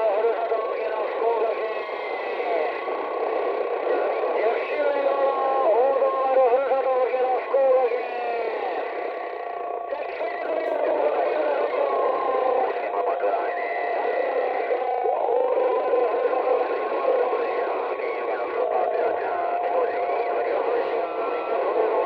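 A radio receiver plays a warbling, distorted signal through a small loudspeaker.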